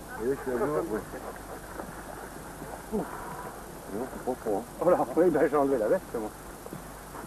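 A man speaks outdoors.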